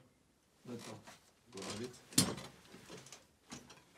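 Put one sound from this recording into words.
A plate clatters onto a table.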